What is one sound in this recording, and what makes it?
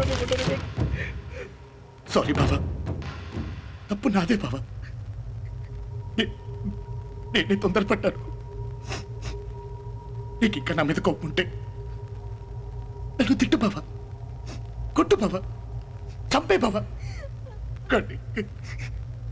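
A man speaks in an emotional, pleading voice, close by.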